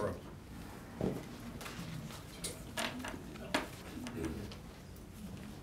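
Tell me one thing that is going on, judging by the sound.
Footsteps cross a hard floor.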